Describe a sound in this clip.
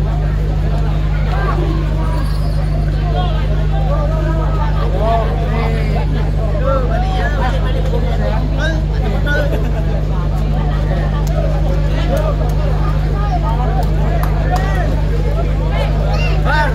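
A large crowd of young men talks and shouts excitedly outdoors.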